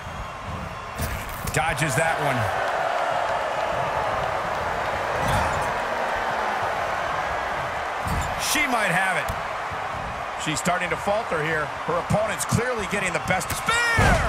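Heavy blows thud and slam on a wrestling ring.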